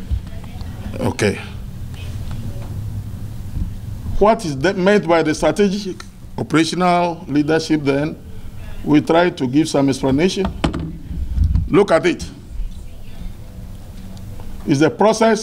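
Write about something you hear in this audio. A man speaks slowly and formally into a microphone over a loudspeaker.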